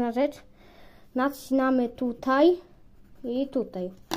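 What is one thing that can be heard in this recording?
A pencil scratches on paper.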